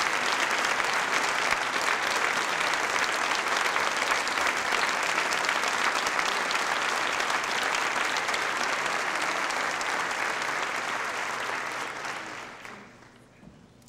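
A large audience applauds loudly in an echoing hall, then the applause dies away.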